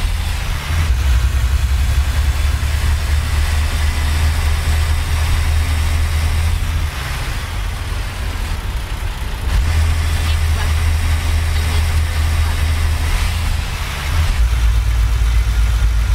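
A truck's diesel engine rumbles steadily, dropping and rising as it shifts gears.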